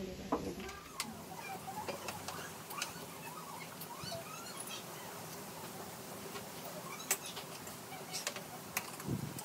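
Forks click against plates.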